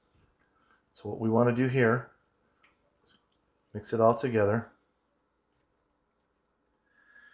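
A spoon stirs thick sauce in a pan.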